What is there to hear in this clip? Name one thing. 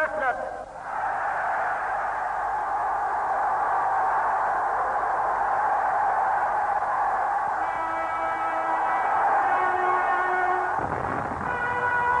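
A large crowd cheers loudly across an open stadium.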